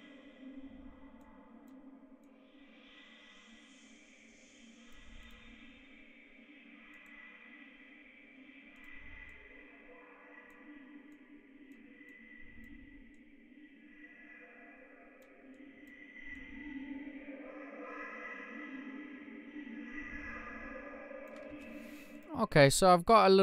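A soft synthesizer pad hums steadily.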